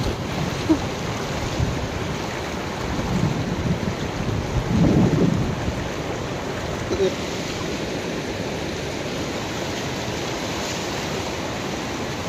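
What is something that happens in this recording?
A woman wades through rushing water.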